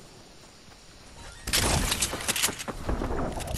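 A treasure chest opens with a shimmering chime.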